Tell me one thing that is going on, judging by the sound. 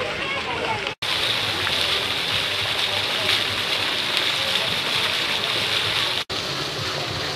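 Fountains splash and spray into a pool.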